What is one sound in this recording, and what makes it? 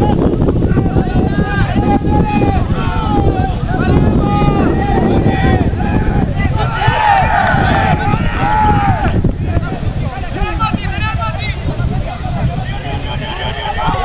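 Young men shout and call out to each other across a field.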